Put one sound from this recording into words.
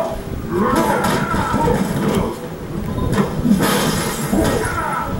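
Fighting game hits and sound effects play through a television speaker.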